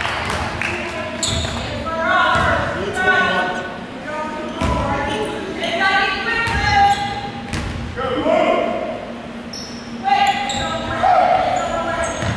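Basketballs bounce on a hard wooden floor.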